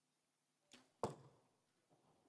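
An arrow thuds into a target.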